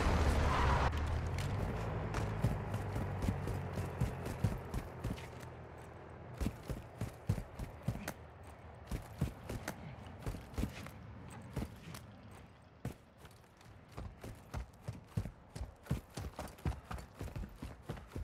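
Footsteps crunch quickly on rocky ground.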